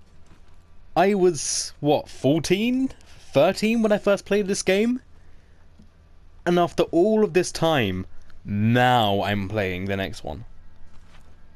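A man answers in a low, gruff voice.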